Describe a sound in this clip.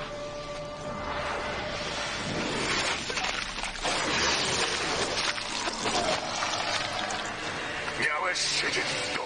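A deep male voice speaks menacingly.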